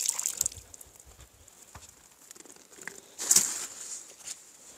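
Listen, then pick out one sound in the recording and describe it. A fishing rod swishes sharply through the air in a cast.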